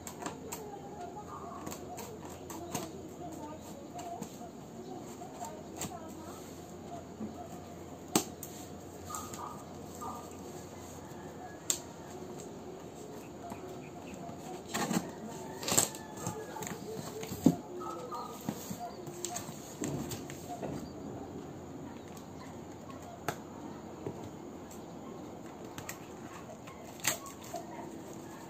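Scissors snip and cut through tape on a cardboard box.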